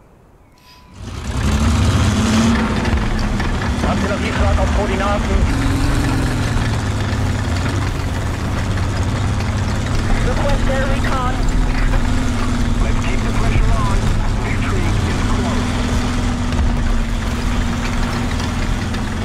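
Tank tracks clank and rattle over rough ground.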